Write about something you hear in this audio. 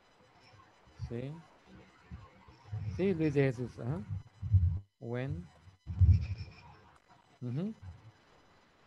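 A young woman answers over an online call.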